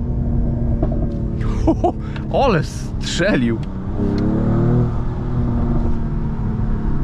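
A car engine roars loudly, revving up and dropping sharply between gear changes.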